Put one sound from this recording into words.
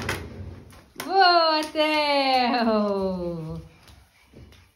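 A toddler lets out a long, loud, falling squeal close by.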